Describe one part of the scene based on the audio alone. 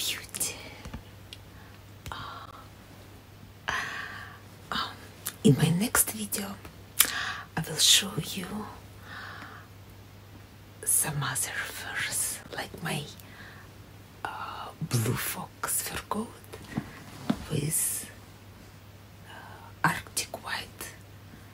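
A woman speaks close up, in a warm, chatty tone, with pauses.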